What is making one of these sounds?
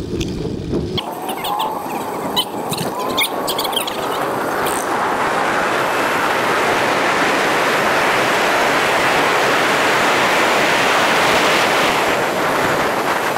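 Wind rushes past a bicycle speeding downhill on a paved road.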